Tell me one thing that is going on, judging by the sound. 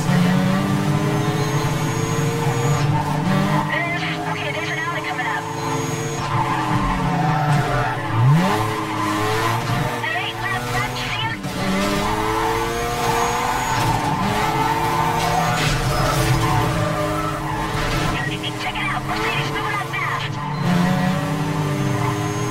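A car engine roars at high revs, rising and falling as gears shift.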